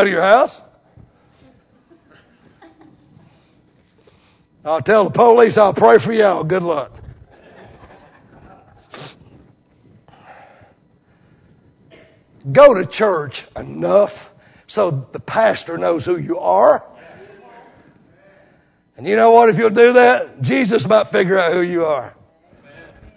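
A middle-aged man preaches with animation into a microphone, in bursts with pauses, in a hall with a slight echo.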